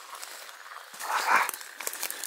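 Leafy branches rustle and brush past.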